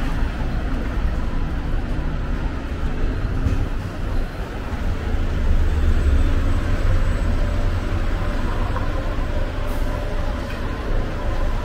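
Traffic hums steadily on a busy street outdoors.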